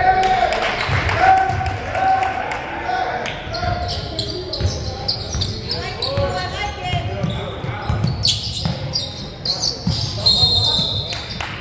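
A basketball bounces with dull thuds on the court.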